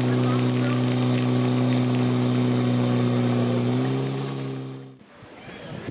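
Water jets spray and hiss from hoses.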